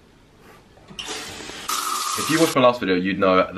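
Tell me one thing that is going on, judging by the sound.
Water sprays from a shower.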